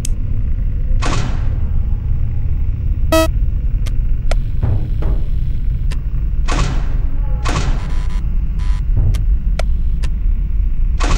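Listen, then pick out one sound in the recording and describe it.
A computer monitor clatters as it flips up and down.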